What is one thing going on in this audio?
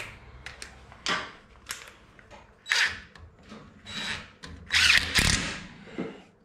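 A cordless drill whirs in short bursts.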